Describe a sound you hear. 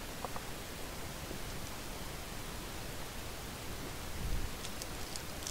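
Cards shuffle and rustle in hands.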